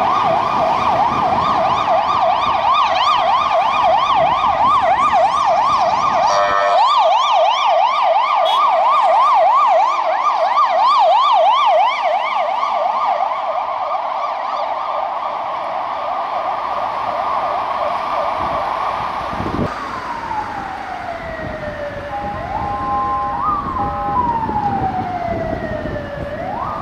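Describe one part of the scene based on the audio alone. Traffic rumbles along the street.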